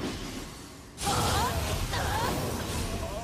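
A sword slashes and strikes in combat.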